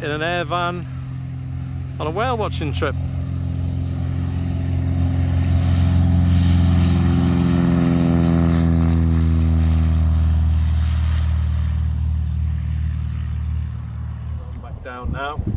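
A small propeller plane's engine drones loudly as it takes off and passes by, its pitch slowly falling.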